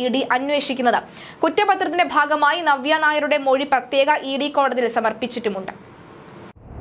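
A young woman speaks clearly and steadily into a microphone, reading out.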